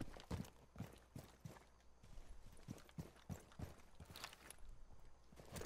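Footsteps thud steadily on the ground at a walking pace.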